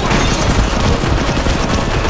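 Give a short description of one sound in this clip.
Swords clash and slash.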